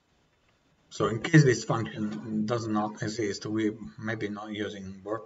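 A young man talks calmly into a nearby microphone.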